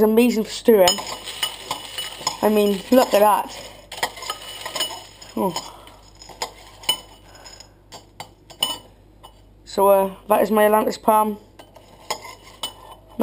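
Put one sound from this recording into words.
A spoon clinks and scrapes against a bowl of crunchy cereal.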